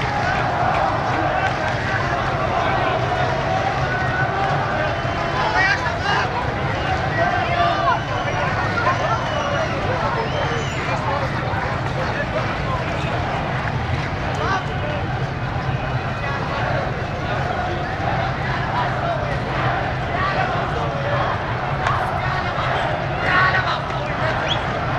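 A large crowd of men chants and shouts outdoors.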